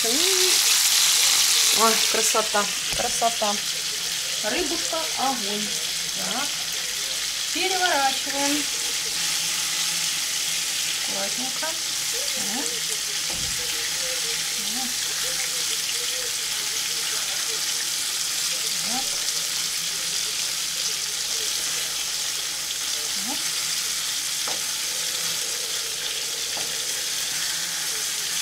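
Food sizzles and hisses in a frying pan.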